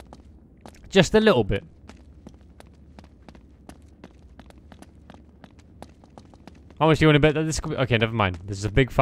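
Running footsteps patter on a stone floor.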